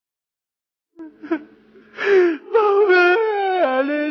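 A man sobs and cries out loudly through a microphone.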